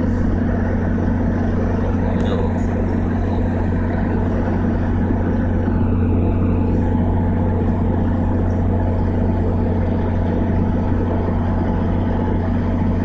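A diesel locomotive idles with a steady low rumble.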